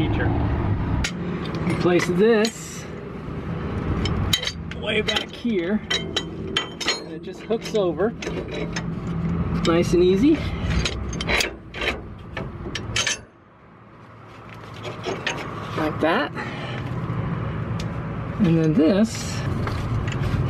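Metal parts clink and rattle.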